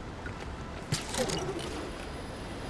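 A blade swishes through the air with a sharp whoosh.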